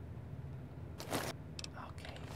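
A menu opens with a short, soft rustling whoosh.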